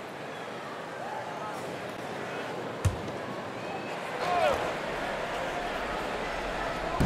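A large arena crowd murmurs steadily.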